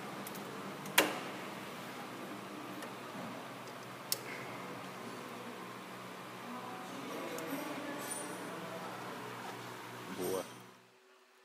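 A plastic cable clip snaps into place with a sharp click.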